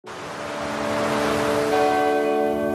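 Waves break and wash over the shore.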